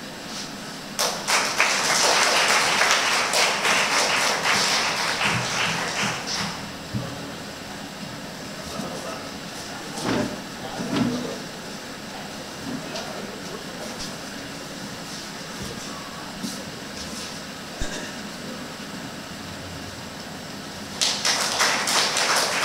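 An audience applauds loudly in a hall.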